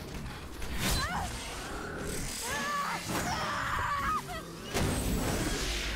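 A young woman cries out.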